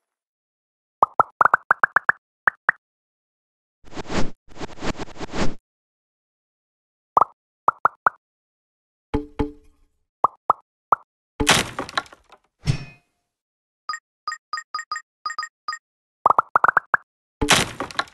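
Game chimes ring out in quick rising bursts.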